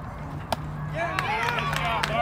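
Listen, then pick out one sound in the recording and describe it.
A bat hits a softball with a sharp crack.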